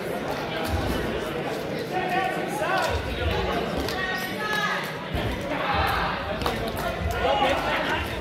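A rubber ball bounces on a wooden floor.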